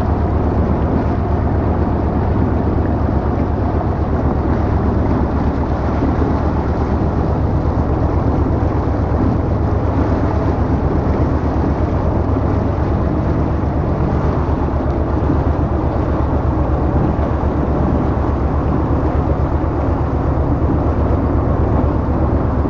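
A motorboat's wake churns and splashes on the water.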